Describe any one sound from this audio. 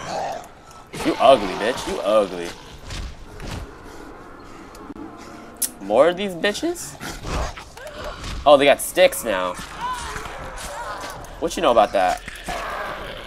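Zombies groan and snarl close by.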